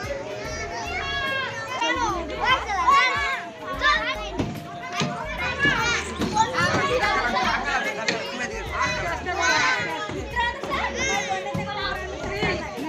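Young children chatter and call out nearby.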